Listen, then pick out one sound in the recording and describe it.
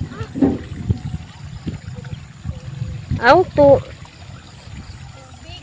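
Water trickles softly through grass.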